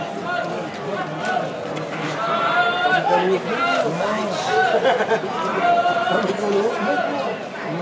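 A large outdoor crowd shouts and cheers.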